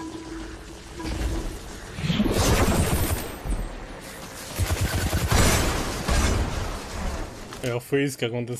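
Gunfire and explosions boom loudly from a game.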